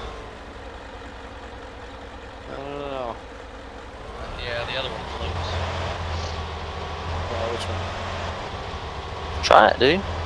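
A vehicle engine hums steadily as it drives.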